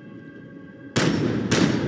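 A loud blast bursts with fire.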